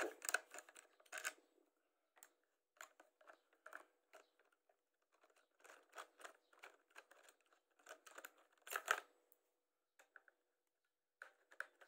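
Metal parts click and knock as they are fitted together.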